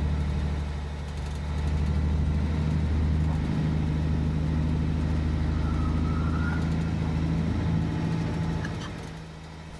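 A heavy diesel truck engine drones from inside the cab.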